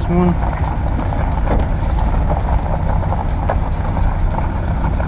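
Tyres crunch over gravel and grass.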